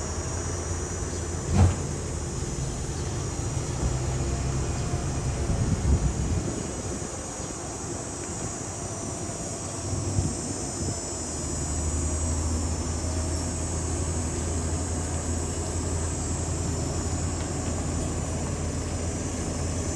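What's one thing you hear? A parked bus engine idles with a low, steady rumble.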